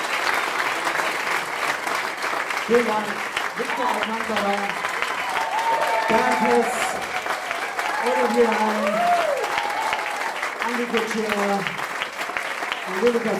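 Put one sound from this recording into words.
A live band plays in an echoing room.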